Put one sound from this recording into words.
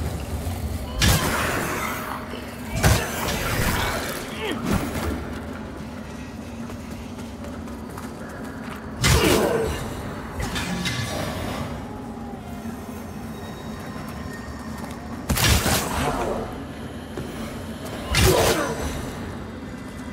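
Magic blasts crackle and boom in short bursts.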